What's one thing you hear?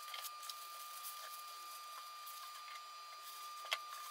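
Packing paper crackles as it is folded.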